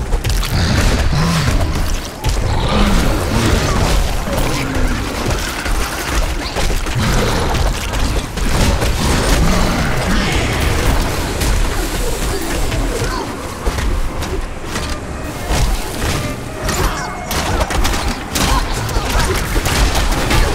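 Weapons clash and strike in a fierce fight.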